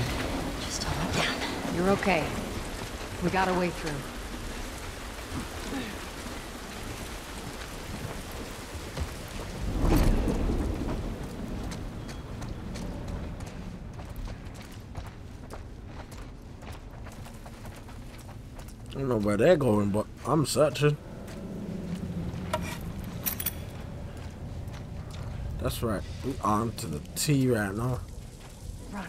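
A young man talks casually into a microphone, close by.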